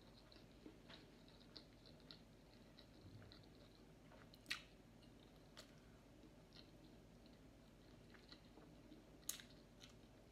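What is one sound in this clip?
A woman chews food with wet, smacking sounds close to a microphone.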